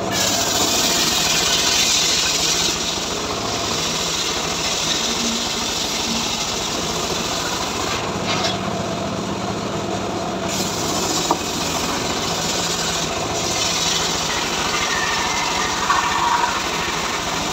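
A sawmill blade whines loudly as it cuts through a log.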